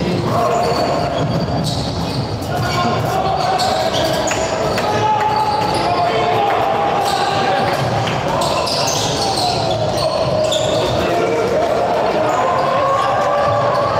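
A crowd murmurs and calls out in a large echoing hall.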